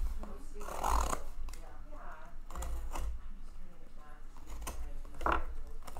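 A knife slits packing tape on a cardboard box.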